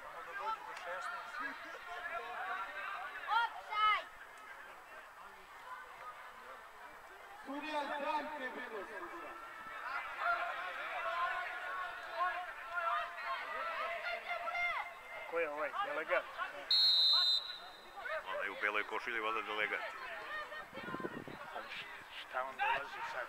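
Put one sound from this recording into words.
Young men shout to each other across an open field, heard from a distance.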